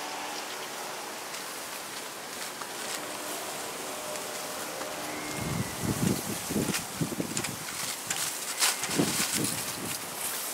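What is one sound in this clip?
A puppy rustles through dry grass.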